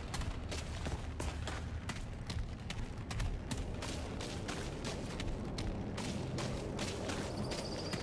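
Footsteps crunch quickly on gravel and dirt.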